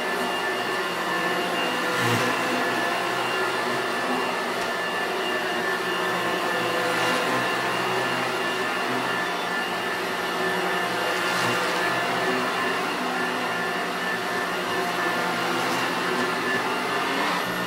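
An upright vacuum cleaner drones steadily while being pushed back and forth over a carpet.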